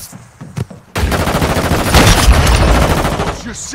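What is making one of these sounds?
Rapid gunfire rattles loudly in a video game.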